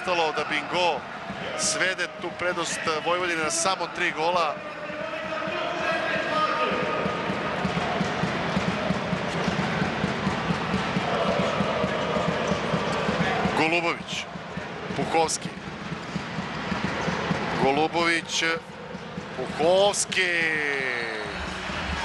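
A ball thumps on a hard court.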